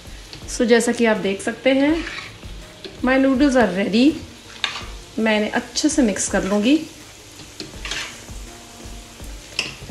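Metal tongs scrape and clatter against a pan.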